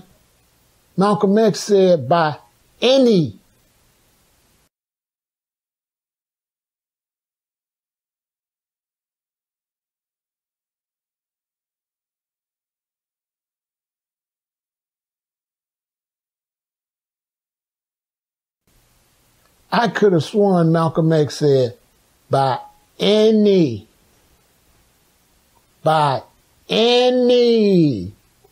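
An older man speaks forcefully and close to the microphone.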